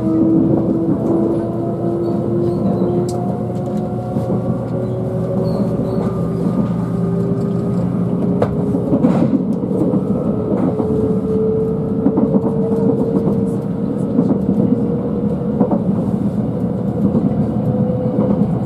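A train's motor hums with a slowly rising whine as it speeds up.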